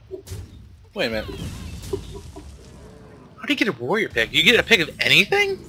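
A game attack lands with a loud crash.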